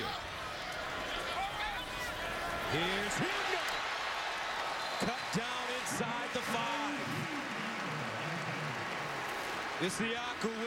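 A large stadium crowd roars and cheers throughout.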